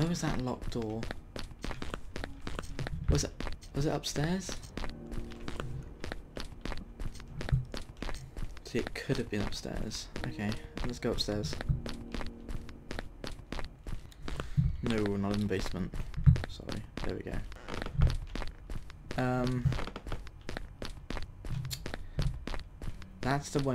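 Footsteps thud steadily across a wooden floor.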